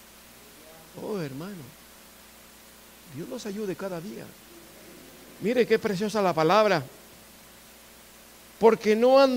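A middle-aged man speaks in short bursts with pauses, a little distant in an echoing room.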